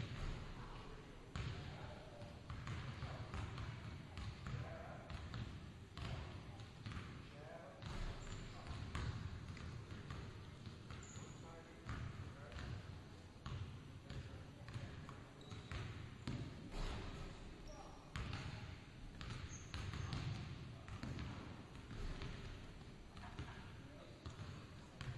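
A basketball bounces on a wooden floor, echoing in a large hall.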